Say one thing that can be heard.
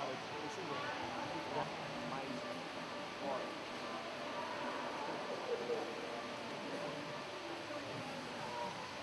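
Young men and women chat casually nearby.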